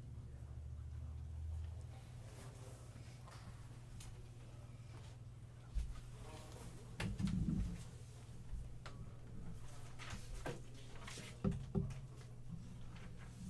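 Paper rustles on a table.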